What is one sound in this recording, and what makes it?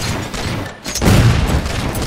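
A loud explosion bursts close by.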